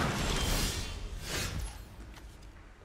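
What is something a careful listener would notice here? A game chime sounds as a turn begins.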